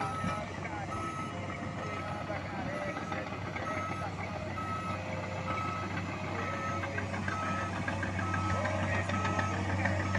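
A reversing alarm on a bulldozer beeps at a steady pace.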